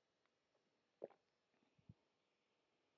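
A mug is set down on a table with a knock.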